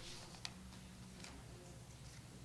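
Paper rustles as a sheet is handled close by.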